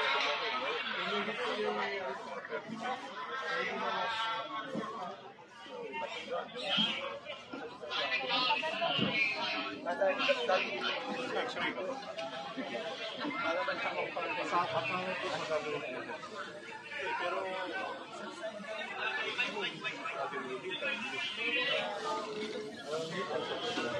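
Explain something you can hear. A crowd of men and women talk over one another outdoors, close by.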